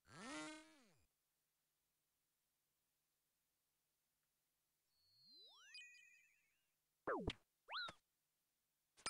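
Electronic game sound effects chime and sweep up and down in pitch.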